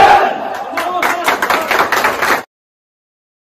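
A group of young men clap their hands and cheer.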